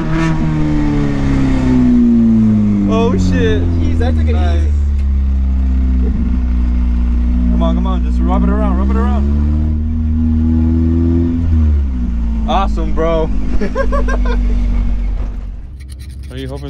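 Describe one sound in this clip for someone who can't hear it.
A car engine roars steadily at high revs.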